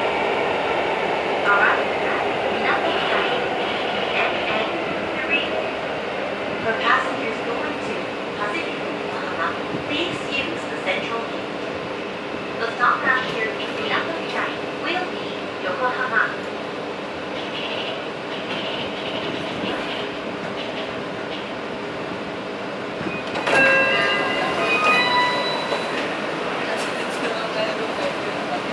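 A train rumbles steadily along its track through a tunnel.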